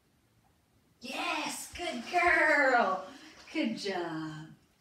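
A woman talks to a dog close by, with animation.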